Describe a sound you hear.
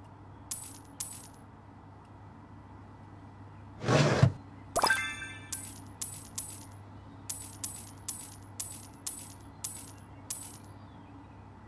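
Short electronic chimes ring in quick succession.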